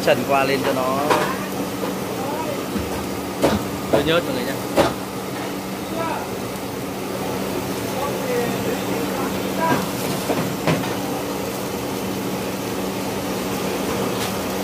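Water boils and bubbles in a pan.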